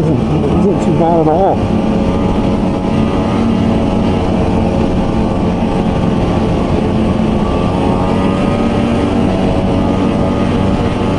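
A snowmobile engine drones steadily up close.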